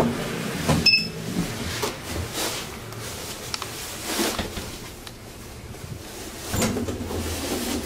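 A traction elevator car hums and rumbles as it travels in its shaft.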